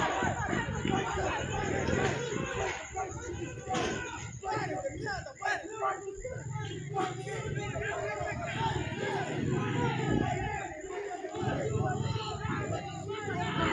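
A crowd of men shouts and yells in the distance outdoors.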